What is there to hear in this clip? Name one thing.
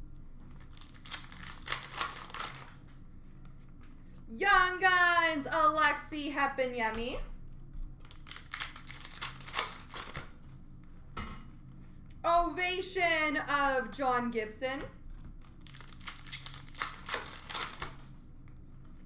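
A foil card pack crinkles and tears as it is opened.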